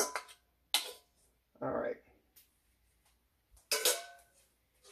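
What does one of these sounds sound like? A metal bowl clinks against a glass dish.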